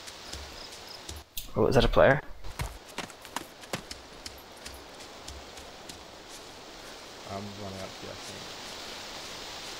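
Footsteps crunch through grass outdoors.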